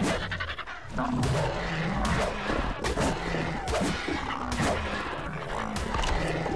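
Large creatures screech and growl as they fight.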